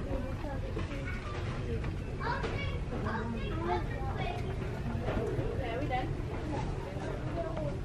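A shopping cart rolls along a hard floor.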